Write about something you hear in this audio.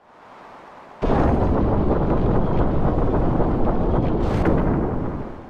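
Heavy doors rumble open.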